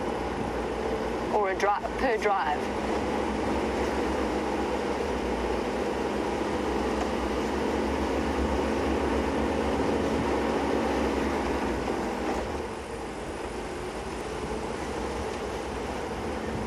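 A vehicle engine hums steadily while driving.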